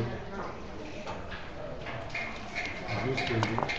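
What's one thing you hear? Game pieces click against each other and the board.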